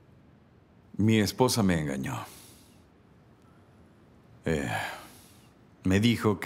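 A man speaks in a low, quiet voice nearby.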